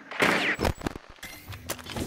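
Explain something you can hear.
Electronic static hisses and crackles.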